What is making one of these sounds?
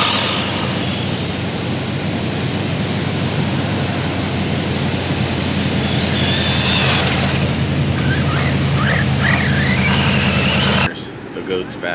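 Wind blows hard outdoors.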